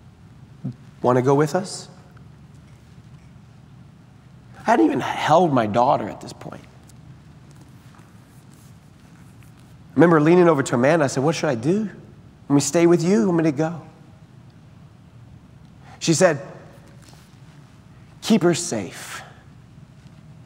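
A man speaks with animation through a microphone, in pauses, in a large echoing hall.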